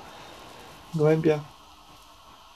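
A pigeon coos close by.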